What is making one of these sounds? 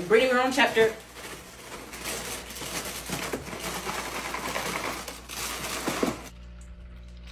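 Dry cereal rattles as it pours out of a box.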